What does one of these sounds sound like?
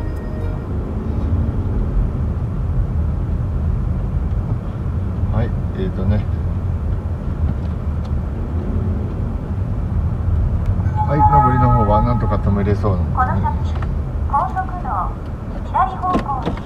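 A car engine hums low and steady while driving slowly.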